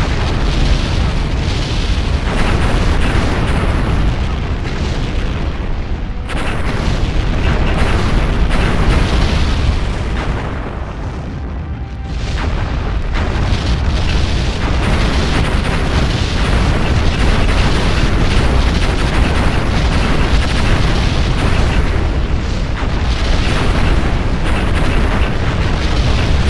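Deep explosions rumble and boom over and over.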